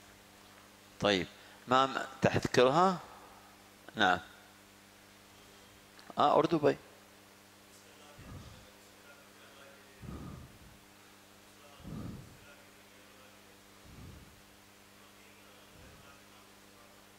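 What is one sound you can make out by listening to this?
A man speaks through a microphone in short, loud bursts, then more quietly, with pauses.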